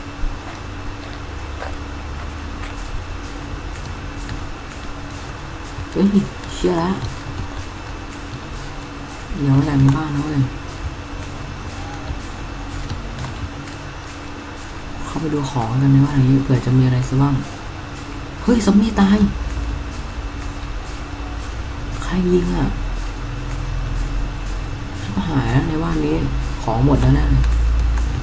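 Footsteps rustle quickly through tall grass.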